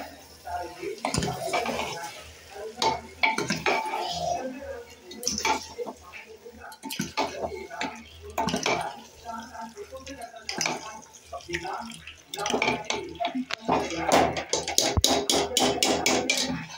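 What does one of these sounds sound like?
A metal ladle stirs cooked chickpeas in an aluminium pressure cooker.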